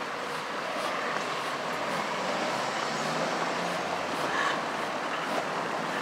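A pickup truck drives past across the street.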